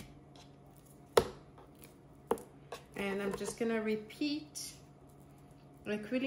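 Pieces of raw meat are pressed and set down on a cutting board with soft thuds.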